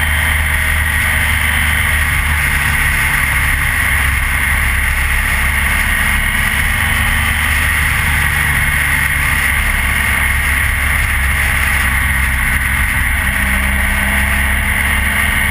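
Wind rushes loudly past a rider's helmet.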